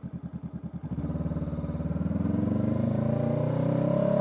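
A parallel-twin motorcycle engine revs up as the bike accelerates.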